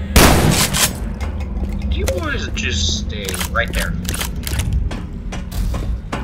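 A shotgun is reloaded with a quick series of metallic clicks.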